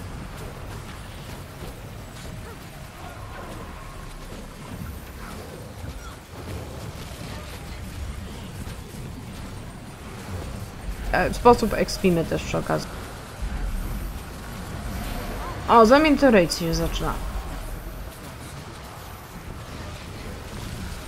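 Magic spells crackle and burst during a fierce battle.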